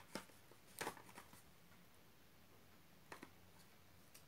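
A small box slides and taps as it is moved.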